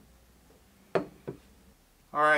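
A glass press pot clinks on a wooden counter.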